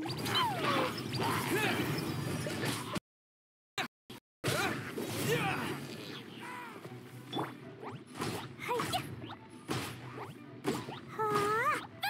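Fiery blasts burst and whoosh in a fight.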